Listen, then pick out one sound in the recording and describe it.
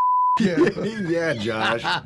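A second man laughs loudly.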